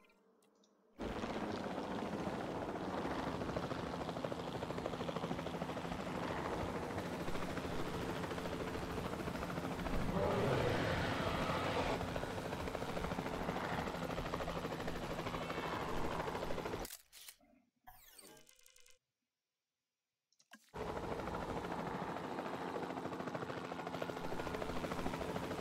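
A helicopter's rotor whirs steadily overhead.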